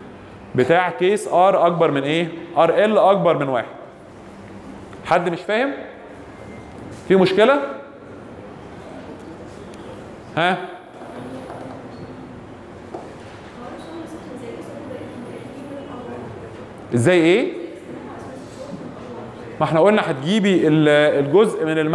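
A young man speaks into a microphone over a loudspeaker in an echoing room, with pauses.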